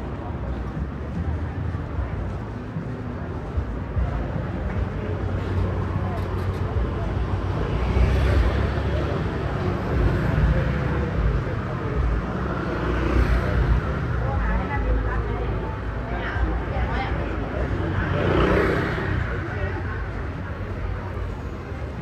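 Outdoors, wind rumbles against the microphone.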